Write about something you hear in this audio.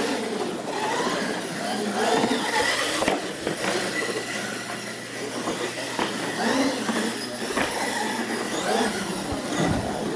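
Toy car wheels bump and clatter over ramps.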